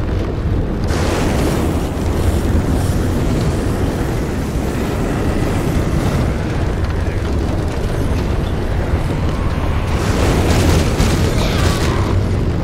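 Flames burst and roar loudly.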